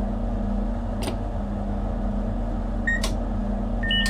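A click sounds as a switch is flipped.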